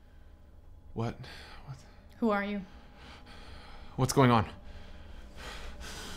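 A young man speaks quietly and tensely close by.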